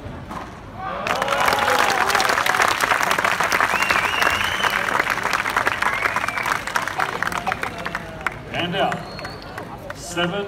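A crowd cheers and applauds loudly in a large echoing hall.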